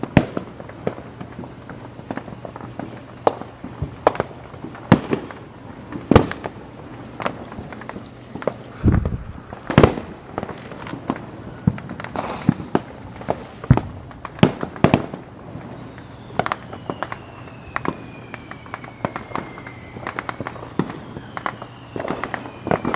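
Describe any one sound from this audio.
Fireworks pop and crackle in the distance, outdoors at night.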